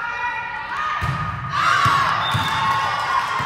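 A volleyball is struck hard a few times in a large echoing gym.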